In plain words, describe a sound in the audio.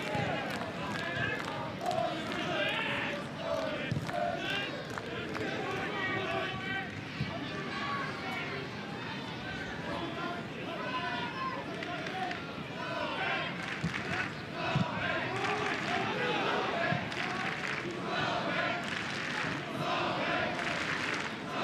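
A large crowd murmurs and chants in an open stadium.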